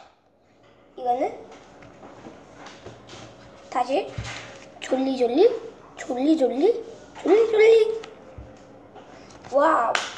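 A young boy talks close by in bursts, with animation.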